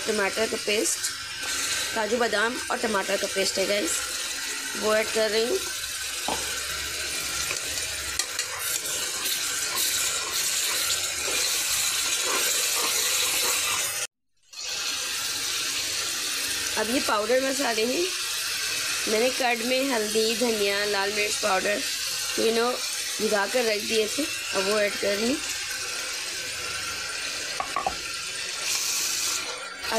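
Oil sizzles and crackles steadily in a hot pot.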